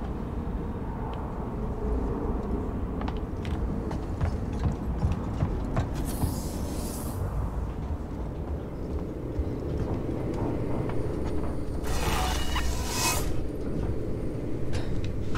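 Footsteps knock and clank inside a narrow metal duct.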